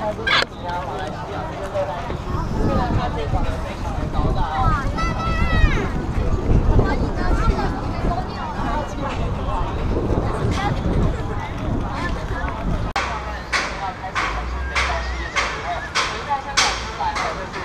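A crowd of adults and children chatters all around outdoors.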